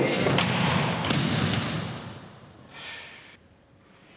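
A person is thrown down and thuds onto a padded mat.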